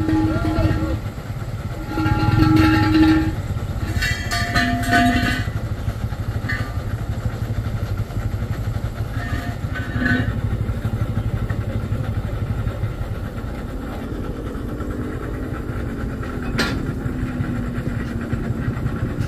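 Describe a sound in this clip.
Heavy truck engines idle with a steady low rumble.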